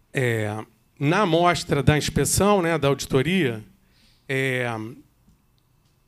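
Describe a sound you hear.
A man speaks calmly into a microphone, pausing often.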